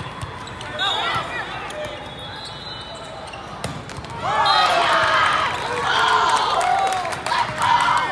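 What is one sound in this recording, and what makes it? A volleyball is struck by hands in a large echoing hall.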